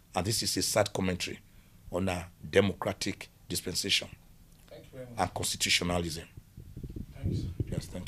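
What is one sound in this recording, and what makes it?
A middle-aged man speaks with animation into a microphone close by.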